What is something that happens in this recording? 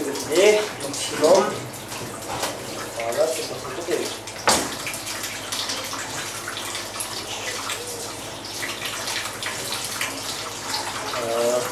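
Hands slap and wipe across a wet counter.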